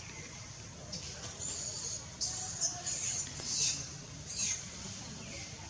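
Dry leaves rustle and crackle under a small monkey crawling on the ground.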